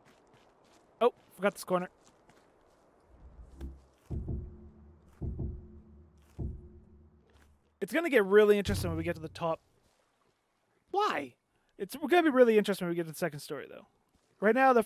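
A young man talks casually and with animation close to a microphone.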